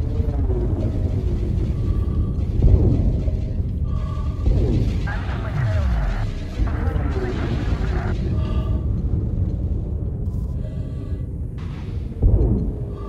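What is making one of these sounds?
Laser guns fire with sharp, falling zaps.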